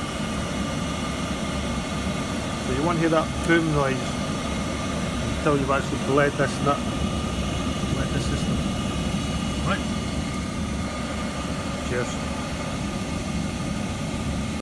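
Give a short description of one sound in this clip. A boiler burner hums and whirs steadily.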